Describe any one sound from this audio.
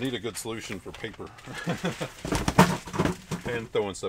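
A plastic sheet rustles and crinkles as it is handled.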